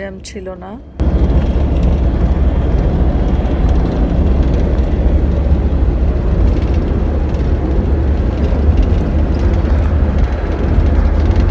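A car engine rumbles steadily with road noise from inside the car.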